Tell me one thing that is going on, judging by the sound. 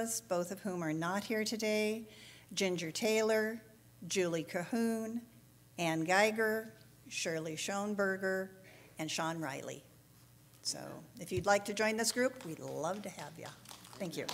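A middle-aged woman speaks calmly into a microphone in a large echoing hall.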